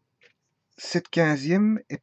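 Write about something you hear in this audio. A marker squeaks across paper.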